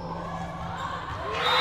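Spectators cheer loudly, rising toward the end.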